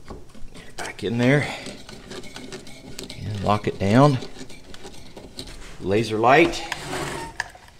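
A clamp screw squeaks as it is turned tight.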